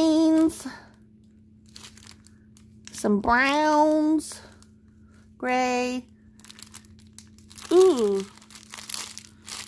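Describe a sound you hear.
A plastic wrapper crinkles as hands handle it.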